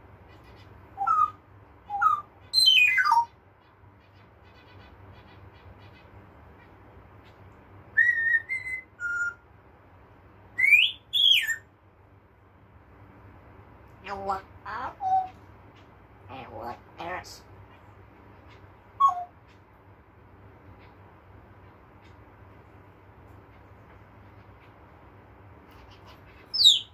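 A parrot whistles and squawks in short bursts close by.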